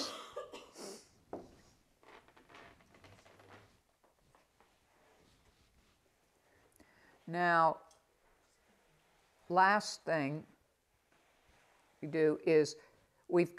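An elderly woman talks softly and calmly nearby.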